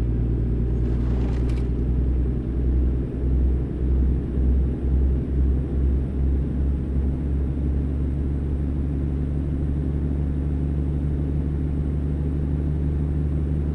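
A truck engine rumbles steadily at low revs.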